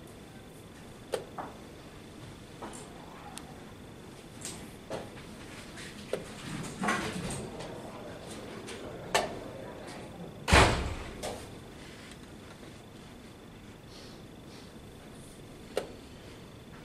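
A chess piece is set down on a wooden board with a light knock.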